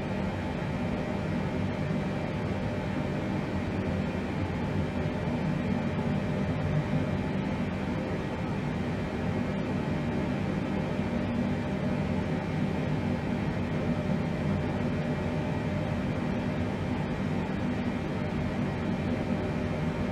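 Aircraft engines drone low and steadily.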